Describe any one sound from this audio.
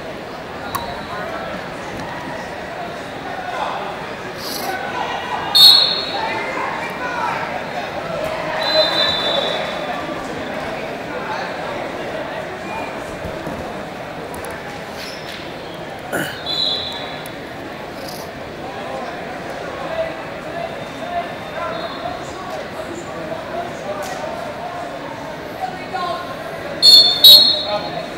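A crowd of spectators murmurs and chatters in a large echoing hall.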